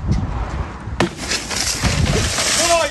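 A pane of glass shatters.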